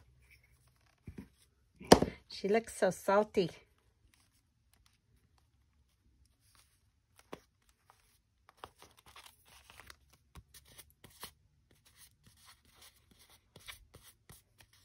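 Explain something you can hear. Paper rustles and taps softly as it is handled.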